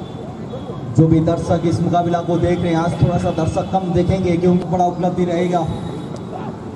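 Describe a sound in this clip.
Several men shout excitedly outdoors.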